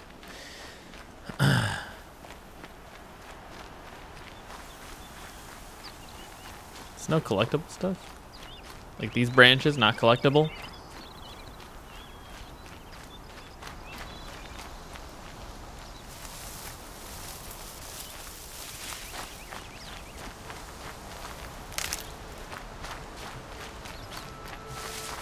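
Footsteps crunch softly through grass and leaves.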